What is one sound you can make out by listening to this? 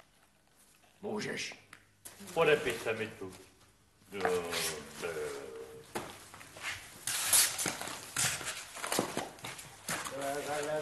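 Several men talk with animation nearby.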